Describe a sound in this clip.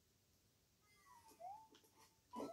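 A video game jump sound chirps several times.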